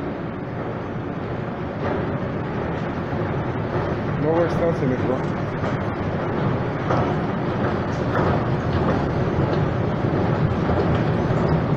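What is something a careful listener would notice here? An escalator rumbles as it moves.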